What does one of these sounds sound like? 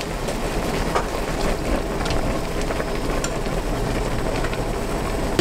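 Soup bubbles and simmers in a pot.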